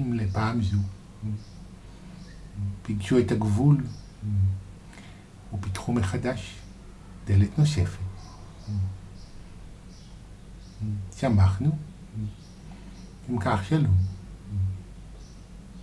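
A man speaks calmly and slowly close to a microphone, with long pauses.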